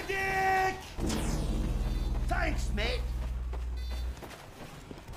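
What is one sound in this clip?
A heavy gun whirs and fires in rapid bursts.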